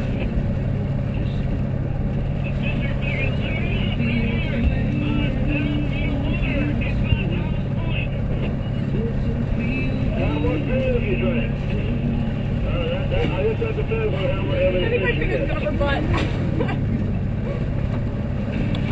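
Boat engines hum steadily outdoors in wind.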